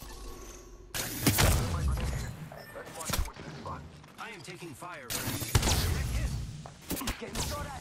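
Laser gunfire crackles and booms in loud bursts.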